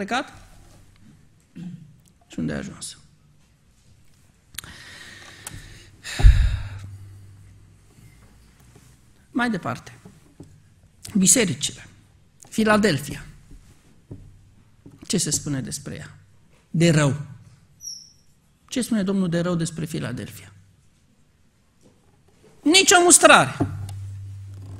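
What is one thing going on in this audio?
A man speaks calmly into a microphone, pausing often between phrases.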